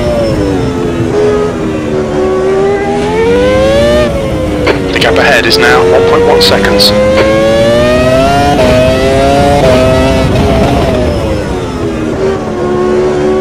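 A racing car engine whines steadily, rising and falling in pitch as it revs up and shifts gears.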